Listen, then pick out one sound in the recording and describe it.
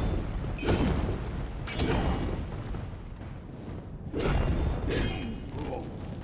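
Sword blows strike with heavy impacts.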